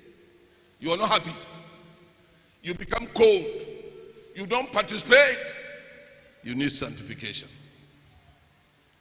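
A man speaks loudly in short, forceful bursts through a microphone and loudspeakers, echoing in a large hall.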